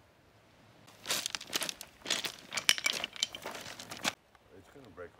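Boots crunch and clatter over loose pebbles.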